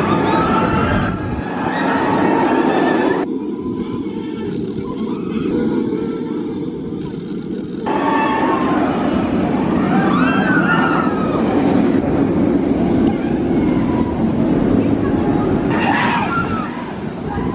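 A roller coaster train rumbles and roars along its track.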